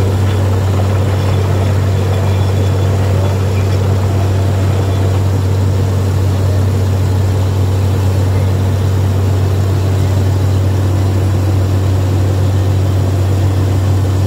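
A drilling rig's engine drones loudly and steadily.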